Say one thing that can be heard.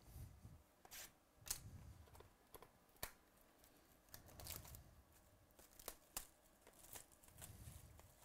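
Plastic wrap crinkles and rustles as hands tear it off a box.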